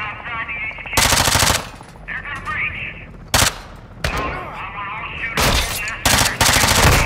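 A rifle fires in short, sharp bursts.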